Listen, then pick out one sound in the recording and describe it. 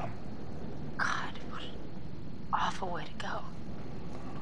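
A young woman speaks in a shaky, upset voice.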